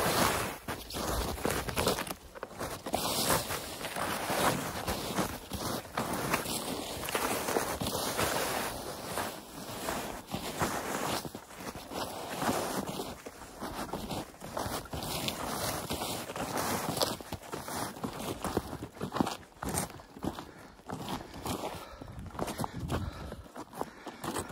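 Boots crunch and squeak through deep snow with steady footsteps.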